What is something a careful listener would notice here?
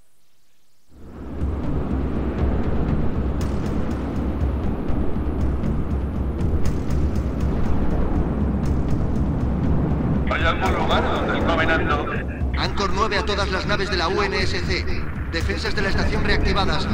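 Spaceship engines rumble steadily.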